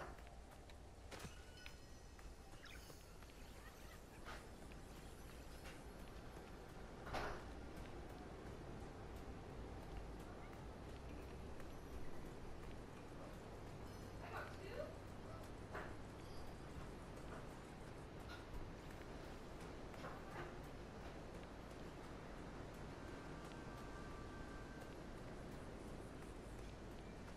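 Light footsteps run over grass and a dirt path.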